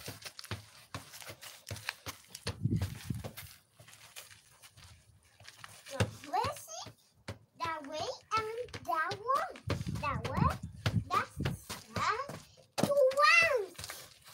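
A ball thuds as it is kicked on grass.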